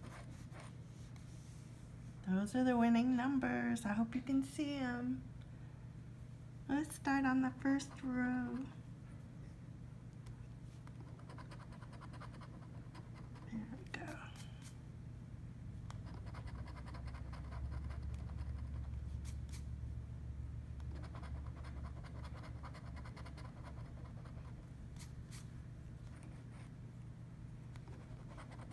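A coin scratches across a lottery ticket's surface.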